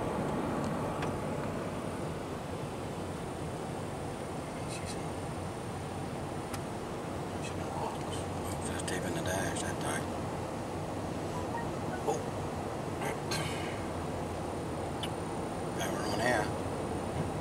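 Tyres hiss on a wet, slushy road.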